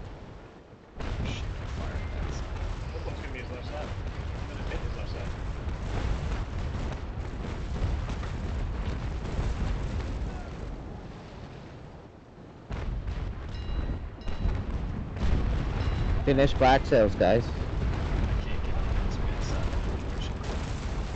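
Water rushes and splashes against a sailing ship's hull.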